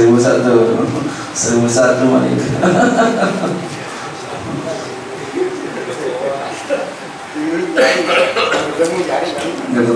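A man laughs into a microphone.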